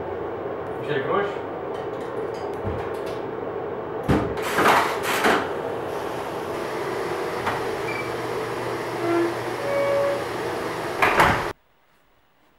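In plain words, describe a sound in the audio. A washing machine hums steadily.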